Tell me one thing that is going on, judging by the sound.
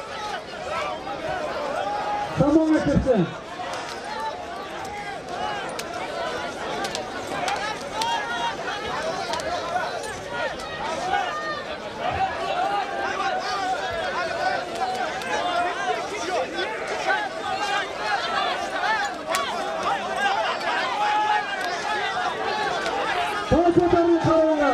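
A large outdoor crowd of men shouts and chatters throughout.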